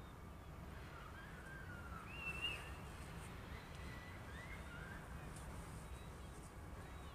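A train rumbles steadily in the distance.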